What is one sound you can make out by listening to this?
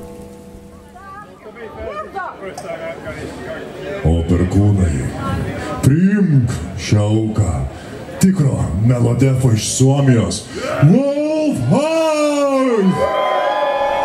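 A man speaks with animation into a microphone through loud speakers, outdoors.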